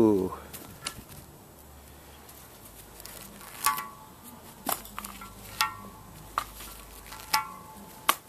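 Plastic film peels off glass with a soft crackle.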